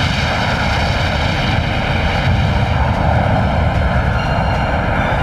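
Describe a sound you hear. Flames roar in a loud, steady blast.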